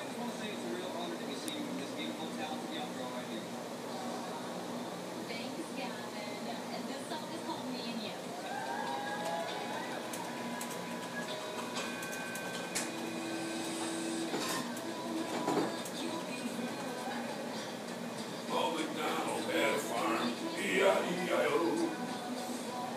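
A television plays singing and music through its speakers.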